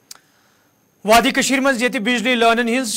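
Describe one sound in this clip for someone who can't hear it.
A male newsreader speaks calmly into a microphone.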